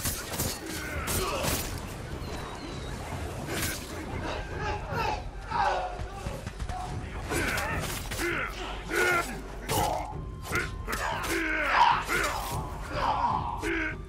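Swords clash and strike in quick, sharp hits.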